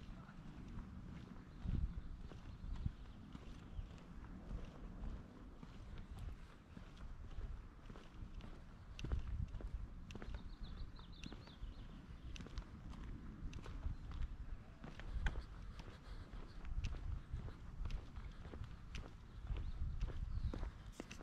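Footsteps tap steadily along pavement outdoors.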